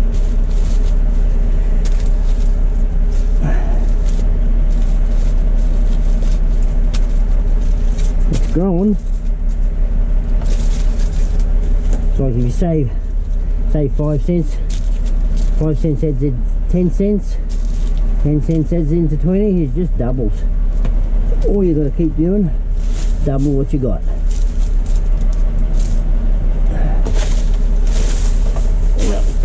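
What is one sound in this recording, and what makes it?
Plastic bags and wrappers crinkle and rustle.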